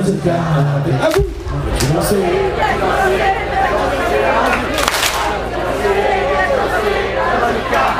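A male singer sings into a microphone.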